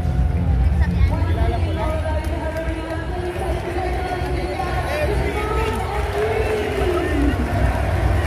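Music plays loudly over arena loudspeakers.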